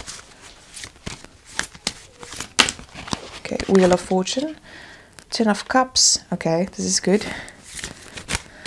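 Playing cards slide and tap softly onto a surface.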